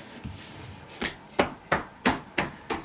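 Hands slap and pat rhythmically on a person's back.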